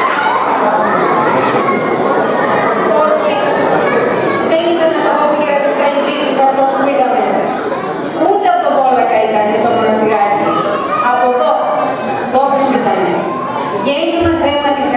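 A woman speaks into a microphone, heard through loudspeakers in an echoing hall.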